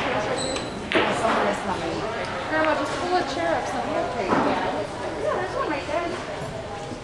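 Billiard balls click against each other as they roll.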